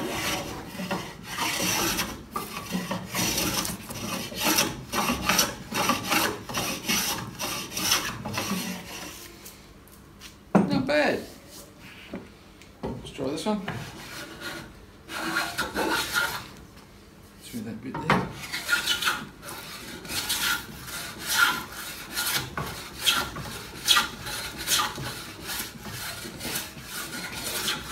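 A hand plane shaves wood in quick, rasping strokes.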